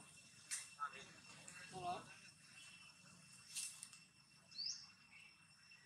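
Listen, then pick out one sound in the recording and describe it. A baby monkey gives short, high squeaks nearby.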